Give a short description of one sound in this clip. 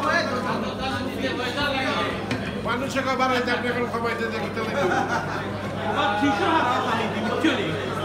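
A young woman speaks through a loudspeaker microphone in an echoing hall.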